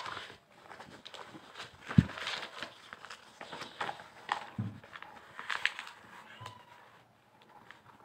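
Sheets of paper rustle and shuffle close by.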